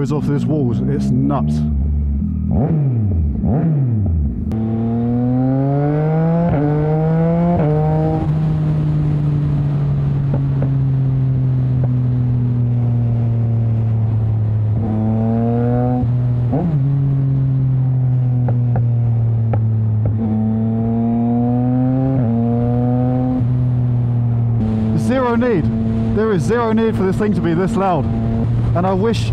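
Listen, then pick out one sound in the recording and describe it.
A motorcycle engine revs and shifts gears as it accelerates.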